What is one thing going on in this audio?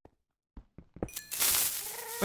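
A pickaxe chips and breaks stone blocks with dull knocks.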